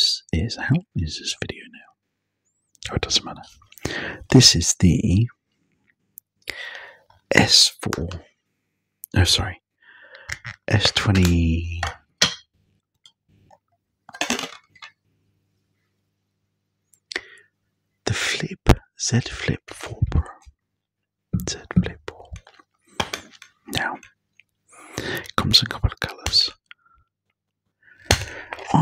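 A man whispers close into a microphone.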